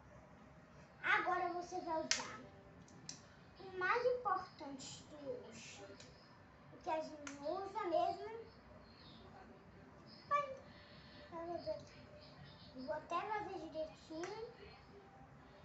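A young girl talks up close in a lively way.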